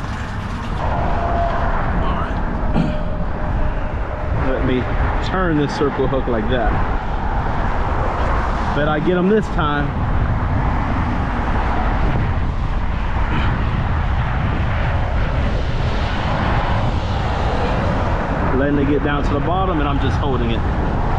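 Wind blows hard and steadily, outdoors.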